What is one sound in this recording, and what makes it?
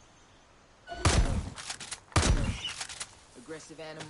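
A rifle fires loud shots that echo outdoors.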